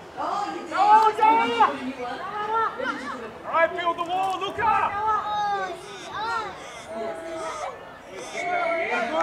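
Children shout and call out to each other across an open field.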